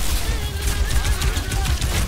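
Magic blasts crackle and whoosh.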